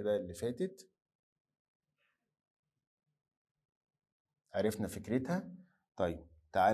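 A middle-aged man speaks calmly and clearly into a close microphone, pausing between phrases.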